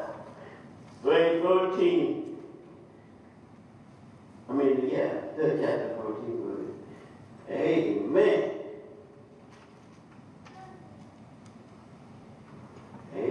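An elderly man preaches into a microphone in loud, emphatic bursts, with echo in a large hall.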